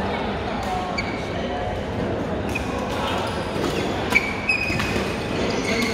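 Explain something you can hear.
Shoes squeak on a hard court floor.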